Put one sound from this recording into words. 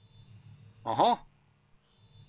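A young man makes a short, loud vocal exclamation close to a microphone.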